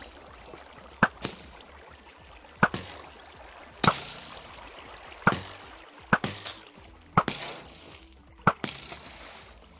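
A bow twangs sharply as arrows are fired, several times in a row.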